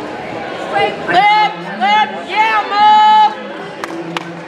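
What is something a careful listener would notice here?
A man nearby shouts encouragement in short loud bursts.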